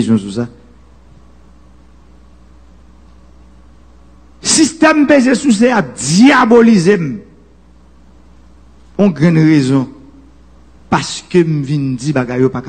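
A man speaks through a microphone with animation, in bursts with pauses.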